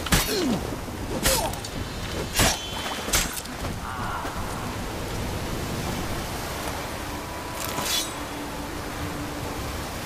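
Wind and crashing waves roar steadily.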